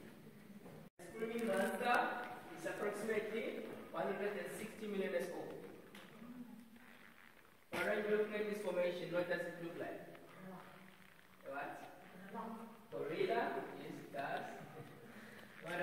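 A man speaks calmly nearby in a large echoing space.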